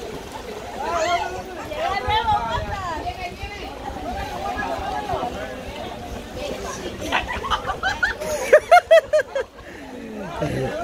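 A crowd of men and women chatter and shout outdoors.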